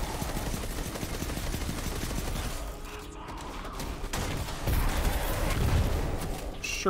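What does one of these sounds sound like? Gunfire rattles rapidly and loudly.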